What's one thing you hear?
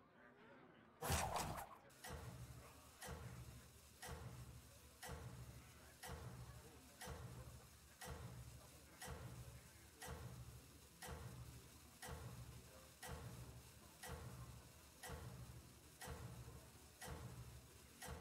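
A countdown timer ticks steadily, about once a second.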